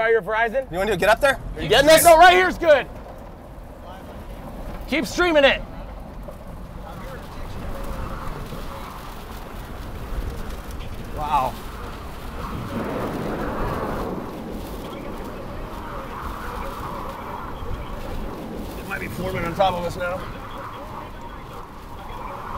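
Wind roars outdoors in a storm.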